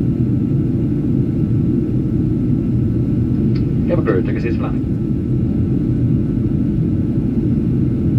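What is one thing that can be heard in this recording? A jet engine roars steadily inside an airliner cabin in flight.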